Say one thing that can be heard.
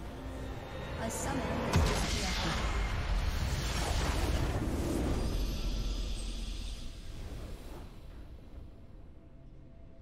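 A game's victory fanfare swells loudly and then fades.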